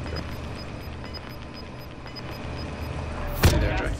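An electronic scanner beeps in quick, steady pulses.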